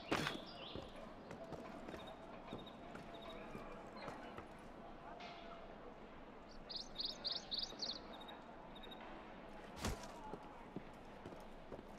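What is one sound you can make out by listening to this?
Footsteps tap on roof tiles.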